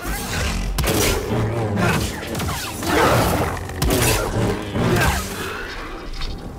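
Lightsabers clash with loud crackling bursts.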